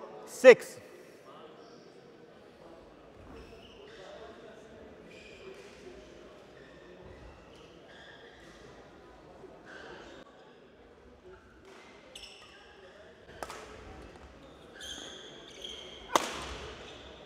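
A racket smacks a shuttlecock in a large echoing hall.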